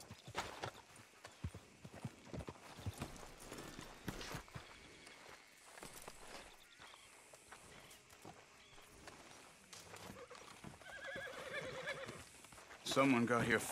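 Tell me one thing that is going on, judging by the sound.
Footsteps crunch on dirt and thud on wooden steps.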